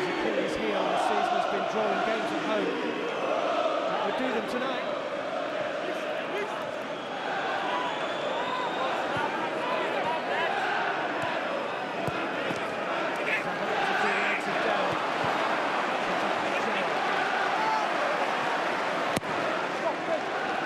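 A large stadium crowd sings and chants loudly throughout.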